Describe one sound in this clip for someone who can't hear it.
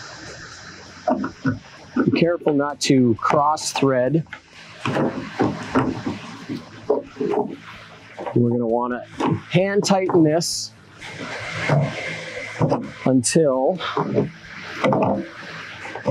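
A plastic panel knocks and rattles against a metal rack.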